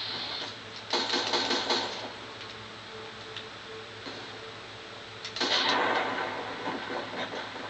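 A shotgun fires with loud blasts.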